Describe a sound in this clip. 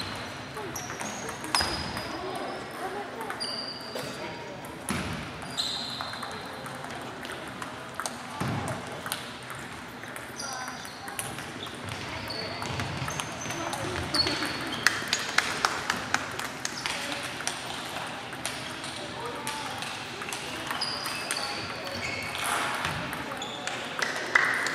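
Table tennis balls click sharply on tables and paddles in a large echoing hall.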